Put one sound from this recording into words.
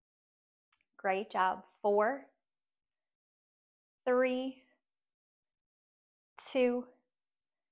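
A young woman speaks in short, clear phrases close by.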